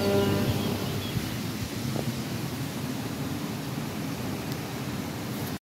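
Wind blows outdoors and rustles leaves.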